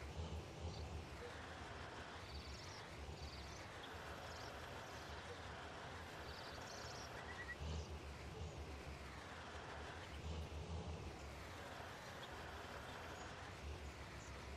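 A hydraulic crane whines as it swings logs.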